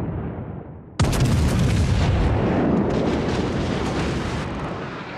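Heavy naval guns fire a loud booming salvo that rumbles away.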